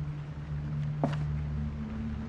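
A stamp thuds softly onto paper.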